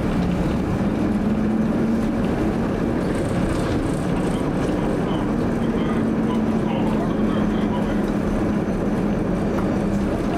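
Tram wheels rumble along the rails.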